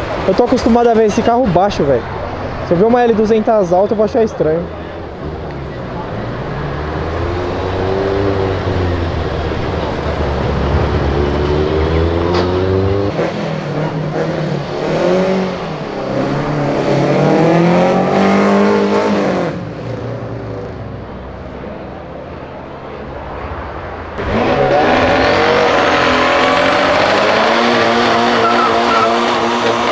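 A car engine revs loudly and roars past.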